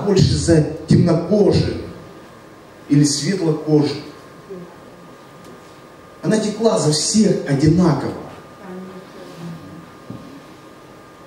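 A middle-aged man speaks with animation through a microphone and loudspeakers, in bursts with pauses.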